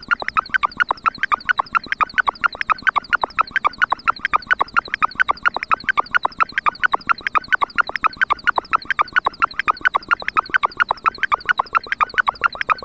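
A synthesizer plays fast, even, pitched blips in a steady rhythm.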